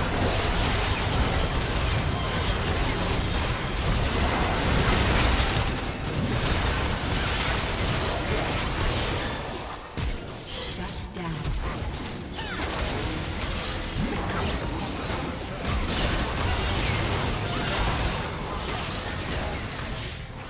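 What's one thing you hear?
Game spells and attacks burst and clash steadily.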